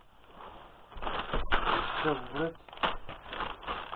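A plastic bag rustles and crinkles.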